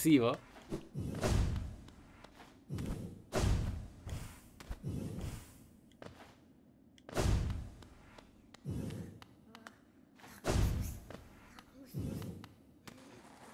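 Soft whooshing thuds come again and again as a small figure jumps and lands.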